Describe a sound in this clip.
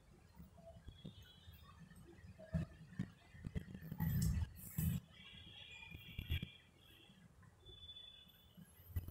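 Knitting needles click and tap softly.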